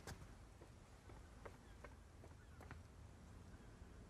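Footsteps crunch on roof tiles.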